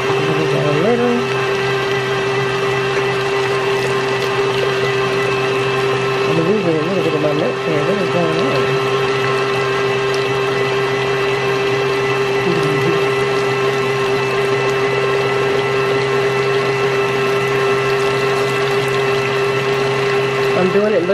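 A stand mixer whirs steadily, its whisk beating batter in a metal bowl.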